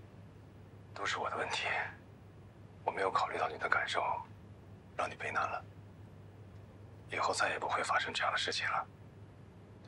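A woman speaks softly and hesitantly on a phone.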